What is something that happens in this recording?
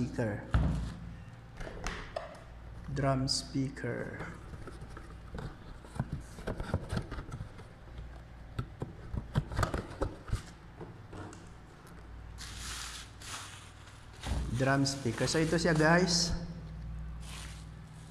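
Bubble wrap crinkles and rustles.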